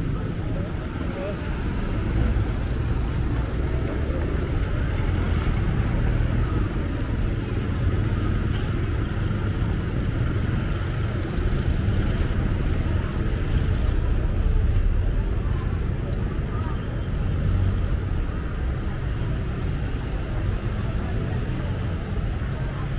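City traffic rumbles steadily below, outdoors.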